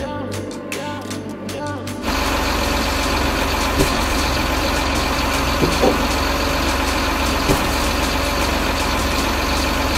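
A hydraulic crane arm whirs as it moves.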